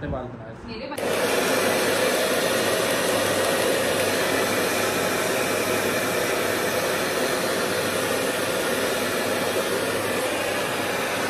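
A hair dryer blows with a steady loud whoosh.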